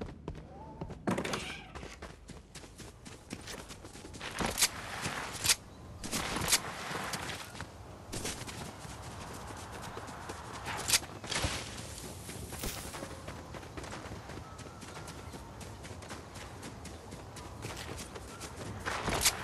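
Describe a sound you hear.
Footsteps rustle quickly through grass and leaves.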